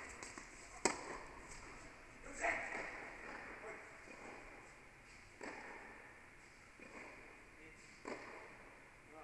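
Tennis balls are struck with rackets, with a sharp pop echoing in a large indoor hall.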